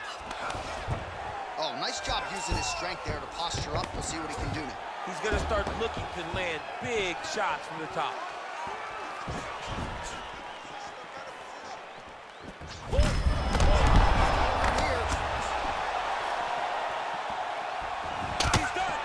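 Fists thud against bodies as two fighters grapple and strike.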